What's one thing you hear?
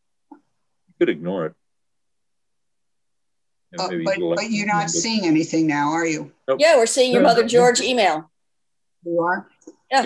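An elderly man talks over an online call.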